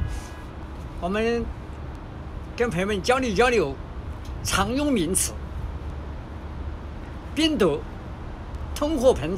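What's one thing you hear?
An elderly man speaks close by in a lively, sing-song voice.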